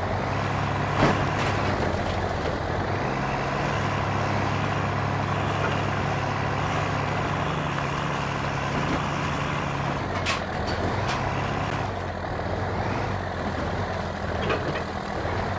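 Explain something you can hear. Metal bangs and thuds sharply as a buggy lands hard.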